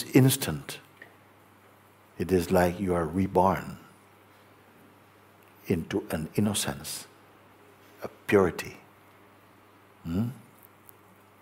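A middle-aged man speaks calmly and closely into a microphone, with pauses.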